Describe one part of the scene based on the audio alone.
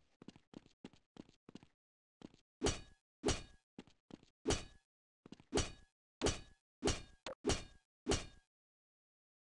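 Footsteps thud on hard ground at a steady pace.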